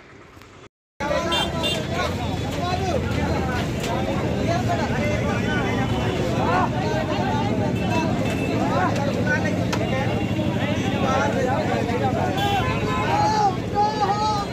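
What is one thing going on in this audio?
Several men talk loudly and at once, close by, outdoors.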